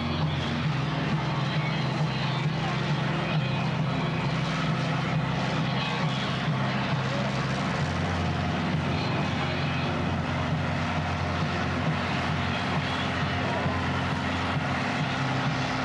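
Tyres screech and squeal as they spin on the pavement.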